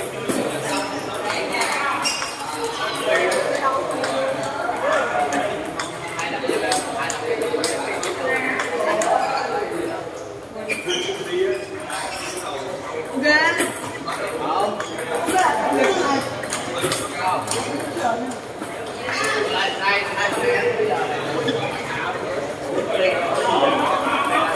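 Table tennis balls click on tables and paddles, again and again.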